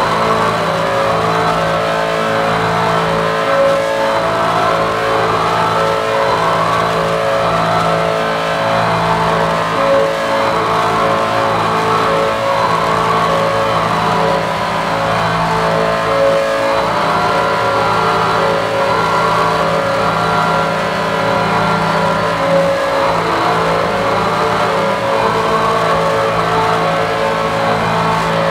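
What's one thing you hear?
Steady droning electronic synthesizer tones play through loudspeakers.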